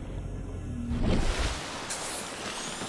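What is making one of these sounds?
A swimmer breaks through the water's surface with a loud splash.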